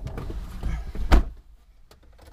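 A car door shuts with a thud.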